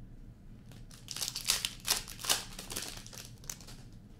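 A foil card wrapper crinkles as it is torn open.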